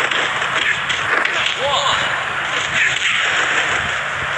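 Bodies thud heavily as wrestlers hit the mat.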